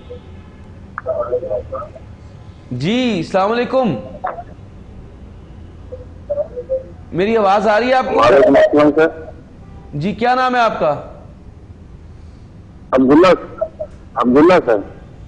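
A man chants a melodic recitation into a microphone, in long held phrases with pauses between.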